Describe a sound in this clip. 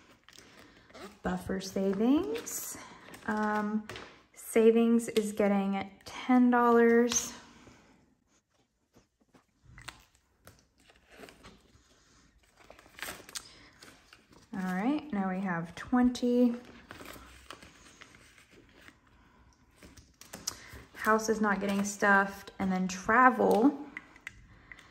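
Plastic binder pages rustle and crinkle as they turn.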